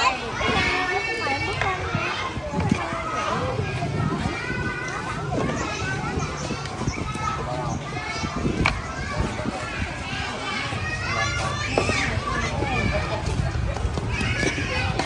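A crowd of children and adults chatter nearby outdoors.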